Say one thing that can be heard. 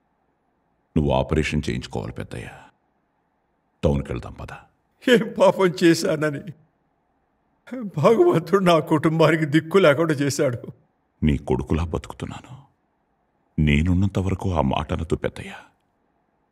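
A man speaks emotionally, close by.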